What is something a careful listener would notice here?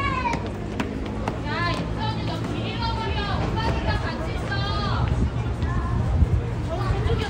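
A crowd of people murmurs and walks nearby.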